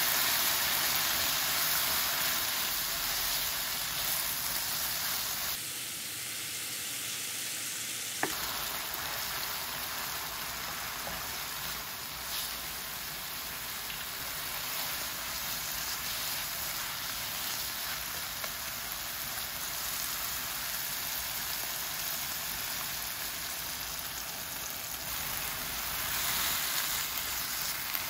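Onions sizzle and crackle steadily in a hot frying pan.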